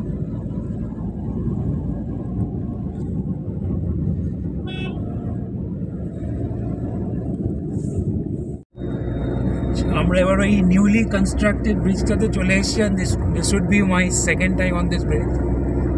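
A car drives along a road with a steady low rumble of tyres and engine.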